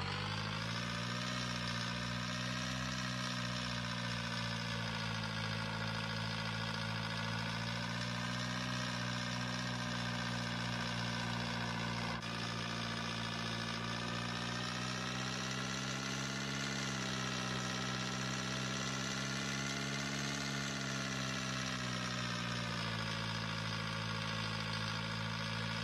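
A small motor hums steadily as a scooter rides along.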